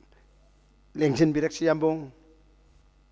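A man speaks through a microphone over loudspeakers.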